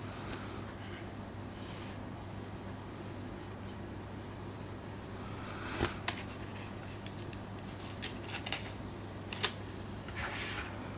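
Gloved hands handle a plastic disc case with soft rustles.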